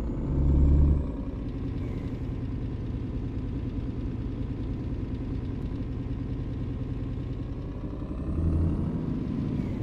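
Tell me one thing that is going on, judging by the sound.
A truck engine briefly rumbles louder.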